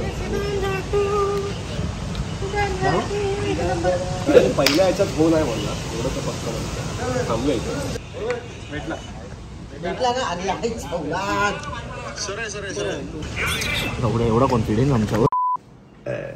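Several young men talk and laugh outdoors.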